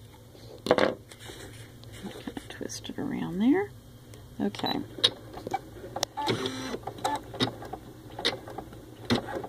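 A sewing machine stitches with a whirring and tapping.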